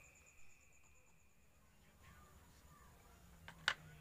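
A plastic container knocks and clatters on a wooden surface.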